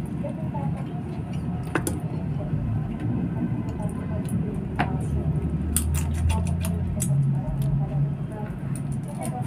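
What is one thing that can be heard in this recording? Shrimp shells crack and crunch as they are peeled by hand.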